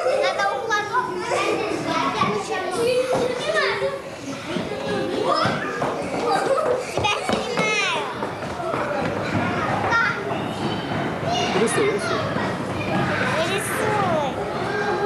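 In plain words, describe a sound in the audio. Young children chatter nearby.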